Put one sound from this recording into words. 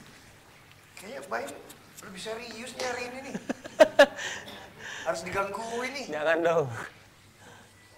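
A young man talks and laughs with animation.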